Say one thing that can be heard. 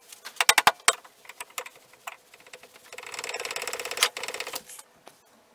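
Pliers scrape and rattle against metal.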